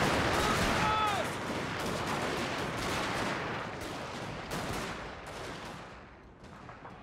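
Muskets crackle in a fierce battle.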